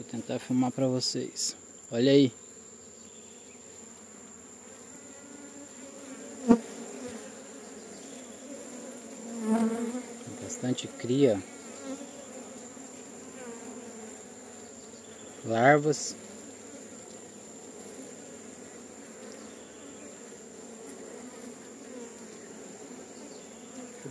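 Honeybees buzz in a low, steady hum.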